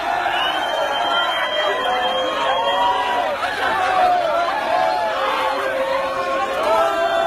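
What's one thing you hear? A crowd of people shouts and cries out loudly and excitedly.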